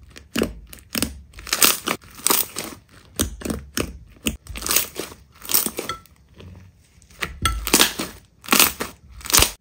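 Hands squeeze and poke soft slime, making wet squelching and crackling sounds.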